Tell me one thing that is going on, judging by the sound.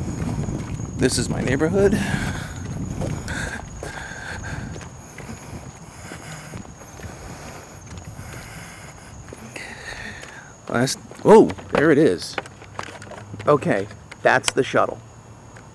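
A middle-aged man speaks close by in short bursts.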